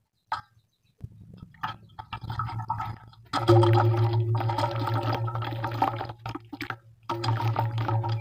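Hands crumble a lump of wet clay into water with splashes.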